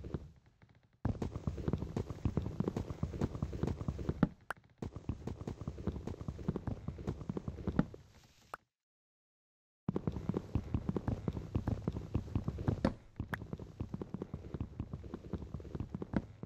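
Blocks of wood are chopped with rapid knocking blows.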